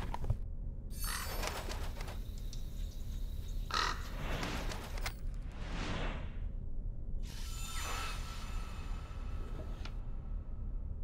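A magical shimmer sweeps past with a sparkling whoosh.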